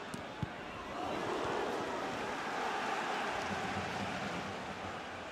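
A stadium crowd roars loudly and then settles.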